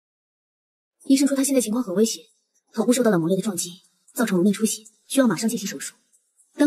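A young woman speaks calmly and with concern nearby.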